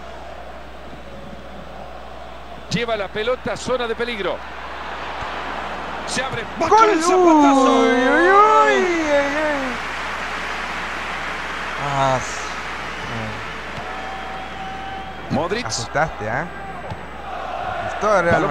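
A large stadium crowd roars steadily, swelling loudly for a few seconds.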